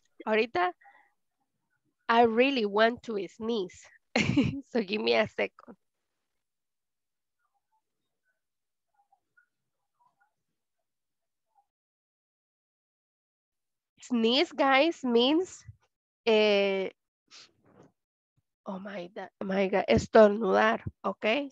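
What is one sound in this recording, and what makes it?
A young woman speaks through an online call, pausing between phrases.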